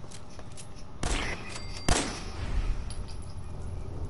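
A pistol fires a few loud shots in a tunnel that echoes.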